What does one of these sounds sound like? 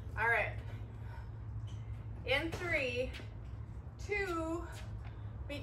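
A jump rope slaps lightly on a hard floor.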